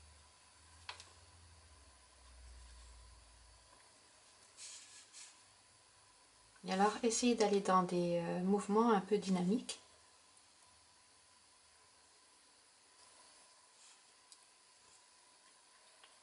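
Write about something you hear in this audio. A brush taps and swirls in paint in a palette.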